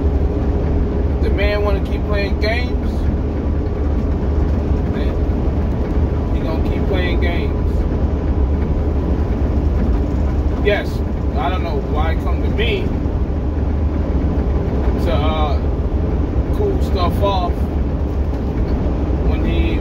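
A truck engine rumbles low and steady throughout.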